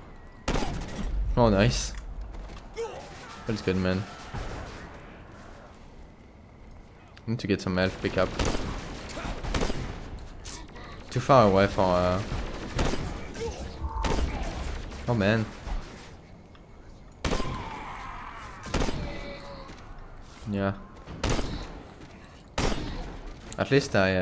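Gunfire from a video game crackles in bursts.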